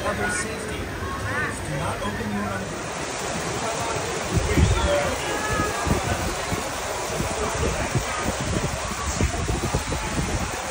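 Water rushes and churns down a channel.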